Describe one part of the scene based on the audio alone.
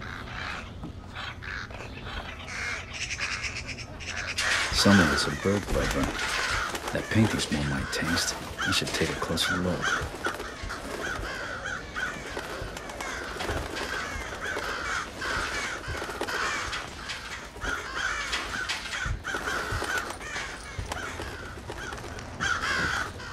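Caged birds chirp.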